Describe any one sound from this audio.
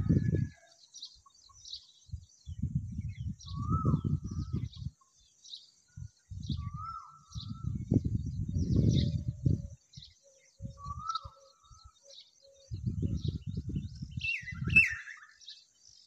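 Small wings flutter and scuffle against dry dirt in bursts.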